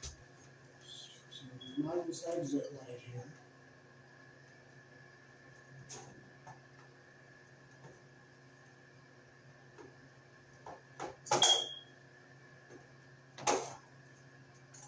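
Plastic clicks and snaps as a man handles a wall fixture.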